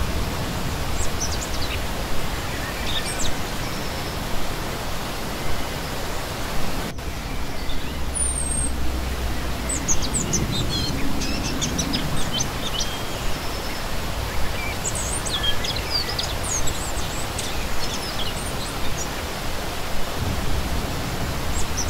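A shallow stream rushes and splashes steadily over rocks.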